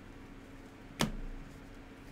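A card is set down on a table with a light tap.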